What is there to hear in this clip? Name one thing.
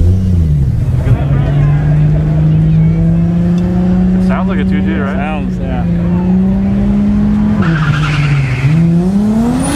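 A car engine holds a steady high idle, then revs up.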